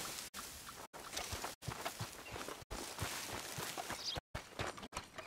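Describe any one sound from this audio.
Dry grass rustles and swishes underfoot.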